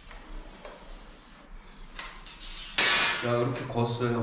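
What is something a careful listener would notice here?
A metal ruler scrapes and slides across a hard floor.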